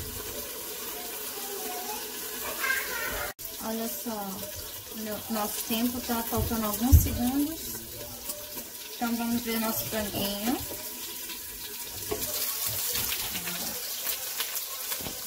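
Meat sizzles on a hot griddle.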